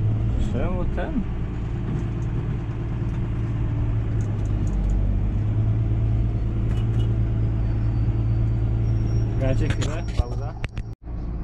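A tractor engine drones steadily from inside the cab.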